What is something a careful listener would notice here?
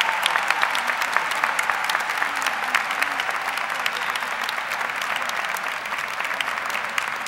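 A large crowd applauds in a big echoing hall.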